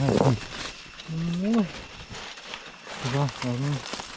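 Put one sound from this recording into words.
Dry leaves rustle and crunch underfoot.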